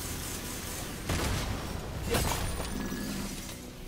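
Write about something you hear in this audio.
Blows strike with sharp thuds.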